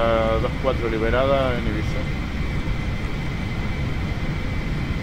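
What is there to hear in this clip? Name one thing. Jet engines rumble steadily.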